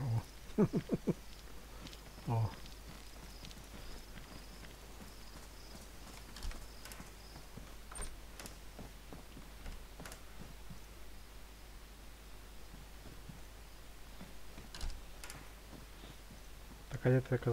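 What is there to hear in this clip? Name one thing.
Footsteps tread on the ground and wooden floor.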